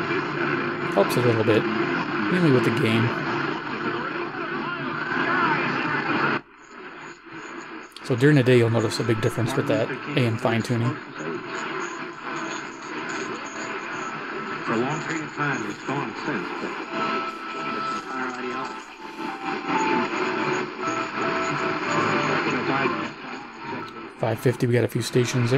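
A small radio plays loudly through its speaker, switching between stations.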